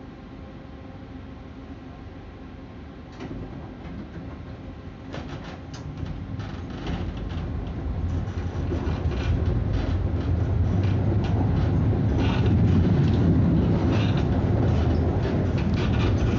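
A tram rumbles along its tracks, growing louder as it speeds up.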